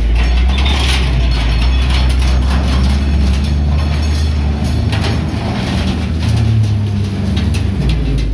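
Metal railings scrape and crash as a loader tears them down.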